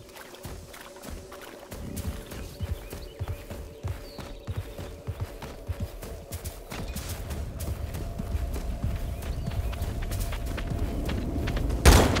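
A mount's hooves thud rapidly on the ground.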